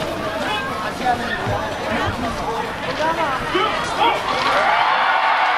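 A young man speaks loudly through a microphone over loudspeakers, with a slight echo.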